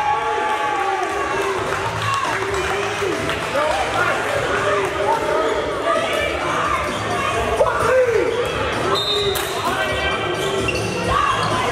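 A crowd of spectators talks and calls out in a large echoing gym.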